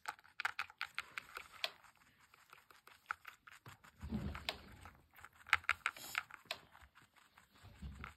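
A small rabbit crunches on dry food.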